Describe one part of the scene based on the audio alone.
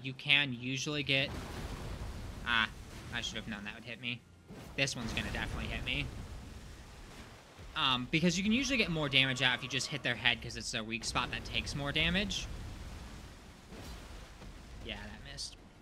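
A sword strikes with sharp metallic hits.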